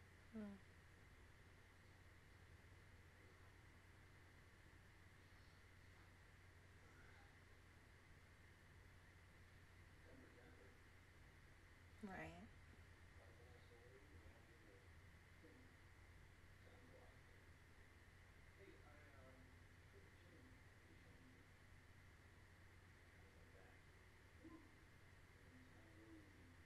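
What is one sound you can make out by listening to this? A young woman speaks softly and quietly, close to a microphone.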